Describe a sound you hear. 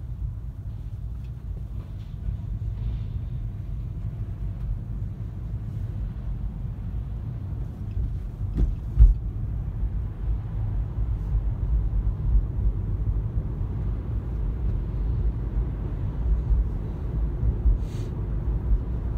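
Tyres roll on asphalt.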